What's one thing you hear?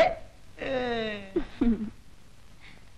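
A young woman sobs and wails in grief.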